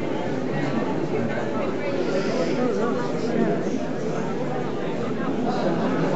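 An elderly woman talks and laughs.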